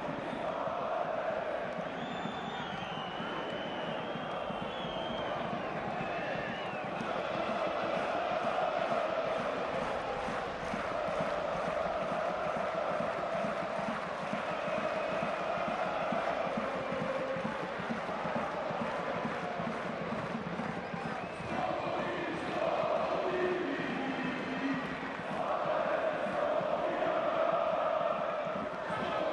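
A large stadium crowd chants and sings loudly and steadily.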